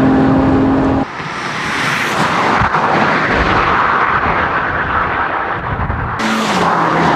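A car roars past at speed.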